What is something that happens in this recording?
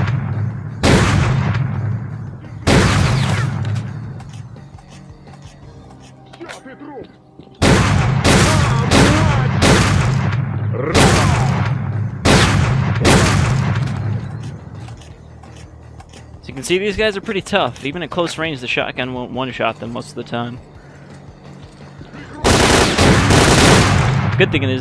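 A rifle fires loud shots and bursts in an echoing space.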